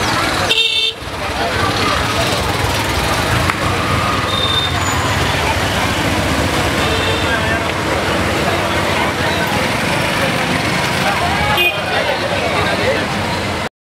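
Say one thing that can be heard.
Motorbikes and auto-rickshaws drive past.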